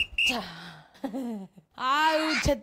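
A young man giggles softly.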